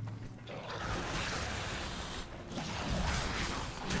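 Magic crackles and bursts with a loud whoosh.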